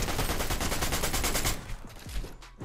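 Rapid clattering building sounds from a video game play at the start.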